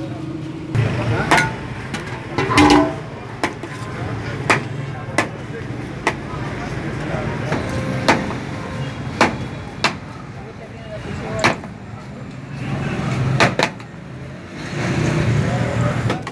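A metal spoon clinks and scrapes against plates and a pot.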